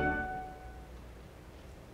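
An organ chord rings out and fades in a large echoing hall.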